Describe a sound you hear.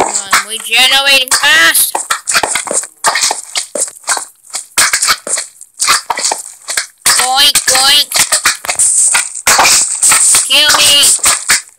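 Game blocks are placed with short soft thuds.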